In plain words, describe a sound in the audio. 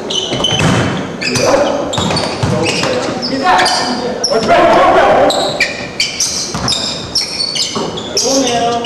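Sneakers squeak sharply on a wooden floor in a large echoing gym.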